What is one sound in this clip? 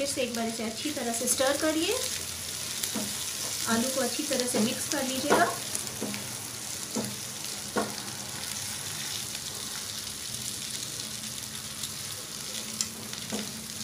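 A spatula scrapes and clatters against a pan.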